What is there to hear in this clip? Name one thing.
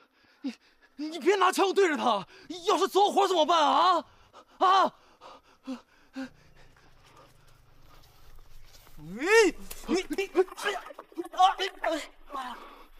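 A young man shouts urgently and angrily.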